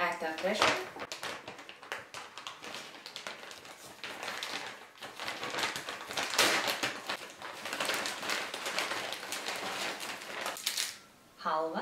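Paper crinkles and rustles loudly as a bag is torn open.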